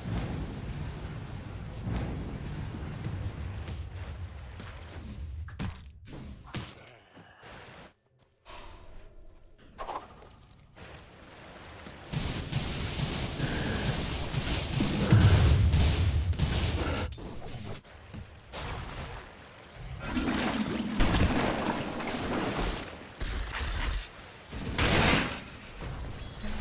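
Magical spell effects whoosh and crackle in a game battle.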